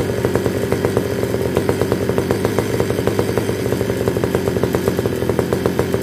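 A small two-stroke engine idles loudly close by with a rapid, rattling beat.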